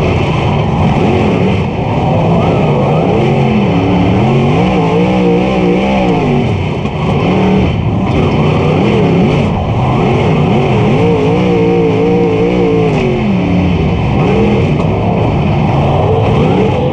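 A race car engine roars loudly up close, revving up and down.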